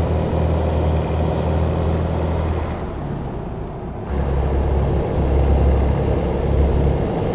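A truck engine drones low and steady, dipping briefly as it shifts gear.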